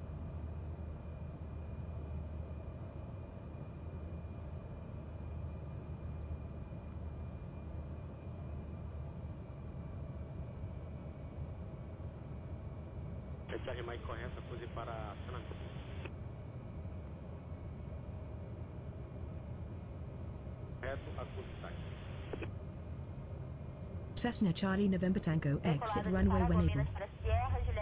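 A light aircraft's propeller engine drones steadily.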